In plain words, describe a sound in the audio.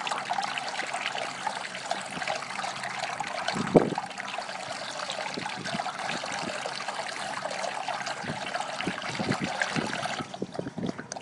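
A dog laps water noisily from a metal bowl.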